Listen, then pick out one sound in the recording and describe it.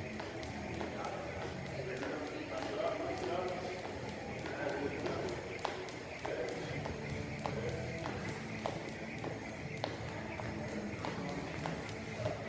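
A heavy ball thuds repeatedly in a large echoing hall.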